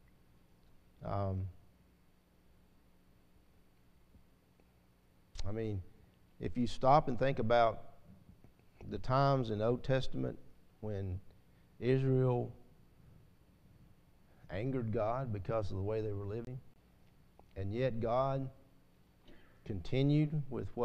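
An older man speaks slowly and earnestly into a microphone, with pauses.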